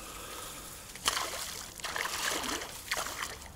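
A fish splashes and thrashes in the water close by.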